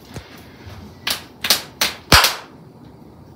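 Hands slap together in quick sharp smacks.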